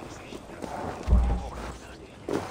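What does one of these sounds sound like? A heavy wooden thud sounds once.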